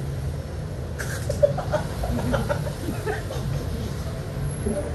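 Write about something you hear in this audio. A young woman laughs nearby.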